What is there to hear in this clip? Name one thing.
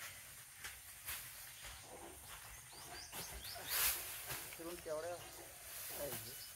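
Dry straw rustles as bundles are handled.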